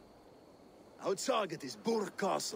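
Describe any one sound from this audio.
A man with a deep voice speaks calmly and firmly.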